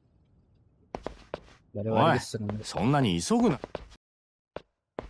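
A man speaks up with animation, close by.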